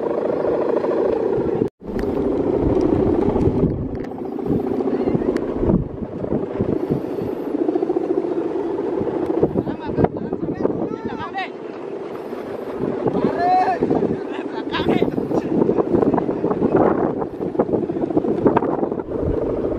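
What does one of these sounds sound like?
A kite's hummer drones loudly and steadily overhead, wavering in pitch.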